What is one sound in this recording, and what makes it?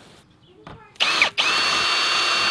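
A cordless drill whirs steadily.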